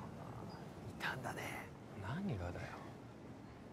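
A second young man answers curtly.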